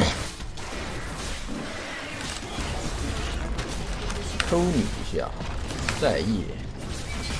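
Game sound effects of spells and hits crackle and whoosh.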